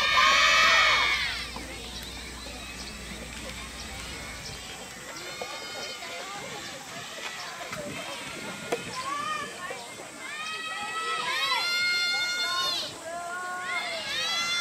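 Tennis balls are struck with a sharp pop outdoors.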